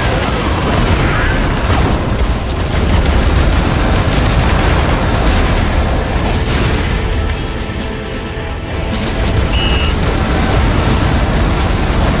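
An aircraft engine roars.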